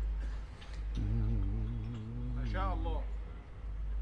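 A man chants in a long, wavering melodic voice through a microphone with echo.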